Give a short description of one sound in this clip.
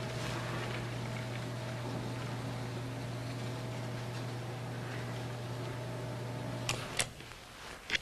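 A motor hums steadily.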